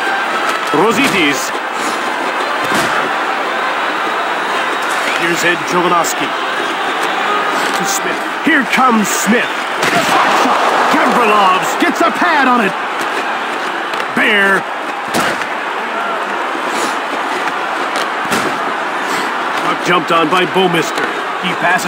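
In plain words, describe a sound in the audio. A hockey stick slaps a puck now and then.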